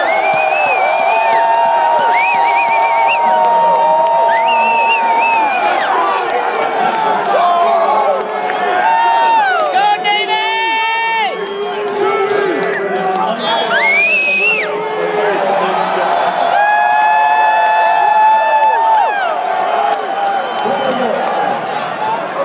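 A large crowd cheers and roars loudly in a big stadium.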